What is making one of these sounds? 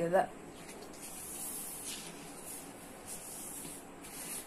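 A sheet of paper rustles as it is moved about.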